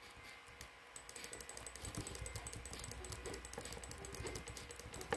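Game sound effects of bats striking rapidly clatter in quick succession.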